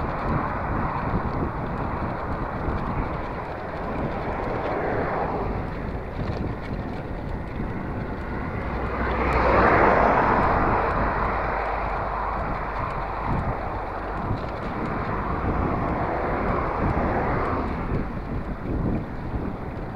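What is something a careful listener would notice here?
Small tyres rumble over a paved road.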